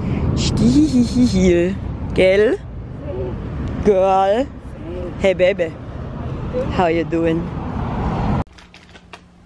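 A young woman talks with animation outdoors, close by.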